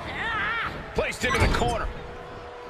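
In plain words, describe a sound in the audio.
A heavy body thuds onto a wrestling ring.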